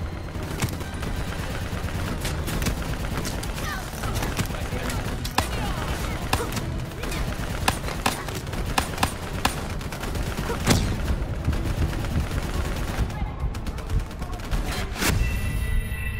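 A gun fires repeated sharp shots.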